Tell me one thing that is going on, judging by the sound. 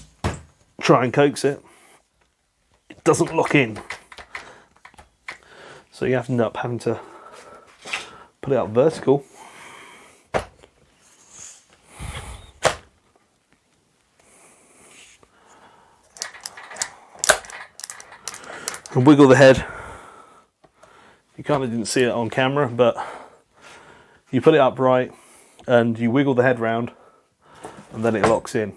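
Plastic parts of a tool knock and click in hand.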